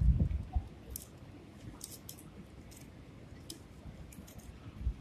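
Dry palm leaves rustle and crackle as they are split and woven by hand.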